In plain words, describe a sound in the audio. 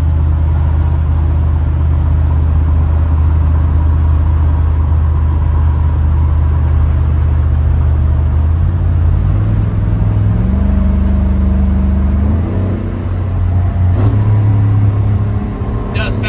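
A car engine hums loudly, shifting pitch as it changes gears.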